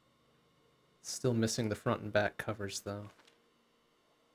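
A man speaks briefly and animatedly into a close microphone.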